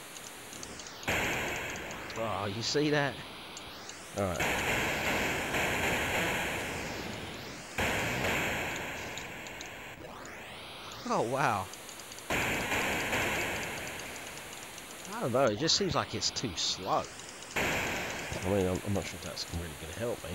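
Bursts of electronic explosion noise hiss and rumble.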